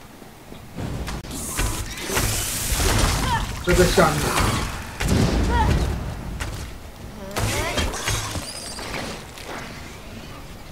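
Weapons clash and spells burst in a fight.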